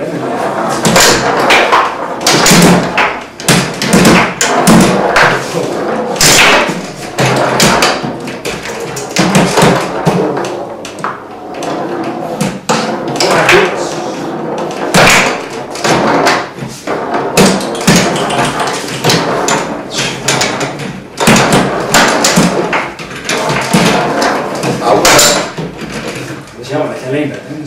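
A plastic ball knocks sharply against the players and table walls.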